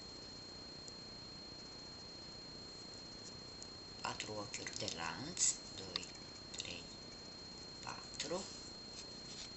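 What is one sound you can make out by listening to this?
Yarn rustles softly as a crochet hook works through it.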